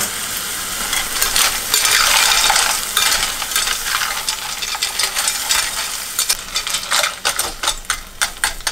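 A metal ladle scrapes and clinks against a steel pot.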